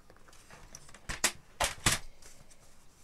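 A paper trimmer's blade slides and clacks.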